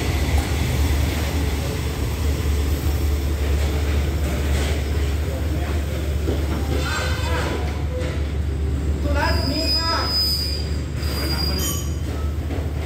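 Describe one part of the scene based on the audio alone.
A train engine rumbles steadily close by.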